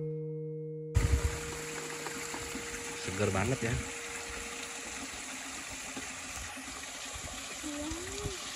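A small stream trickles and splashes over rocks.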